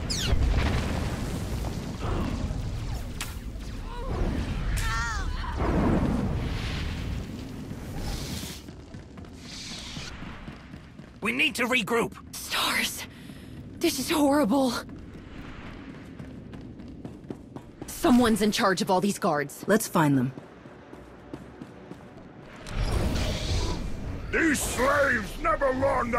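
Energy blades hum and clash in a fast fight.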